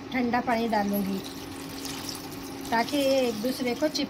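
Water from a tap runs onto pasta.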